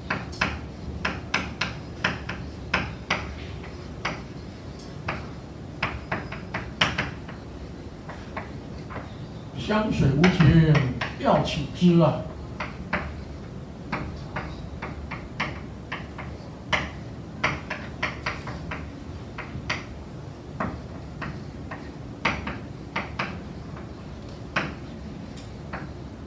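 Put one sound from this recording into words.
Chalk taps and scratches sharply on a blackboard.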